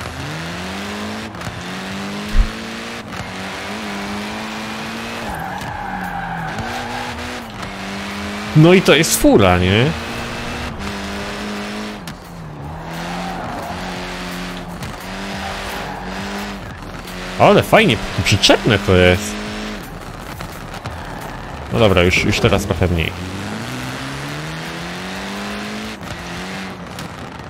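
A car engine revs up and down and shifts gears.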